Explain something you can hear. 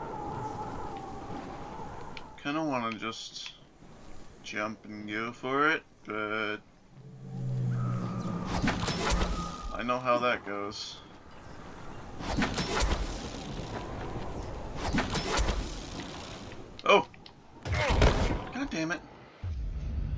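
A zipline rope whirs as someone slides down it fast.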